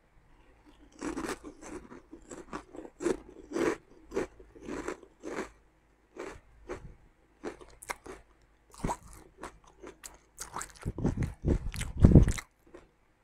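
A plastic snack bag crinkles.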